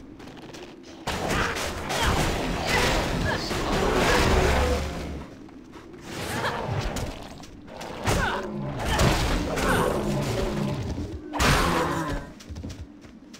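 Spells and weapons clash in a fast battle, with bursts of magic blasts and hits.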